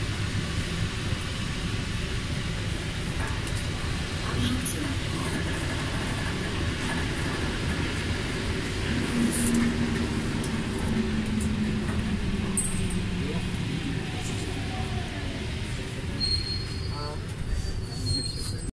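A subway train rumbles steadily while moving.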